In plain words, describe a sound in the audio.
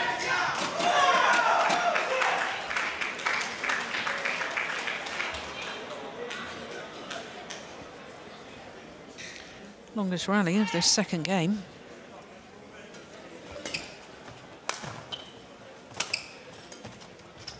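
Rackets strike a shuttlecock with sharp pops.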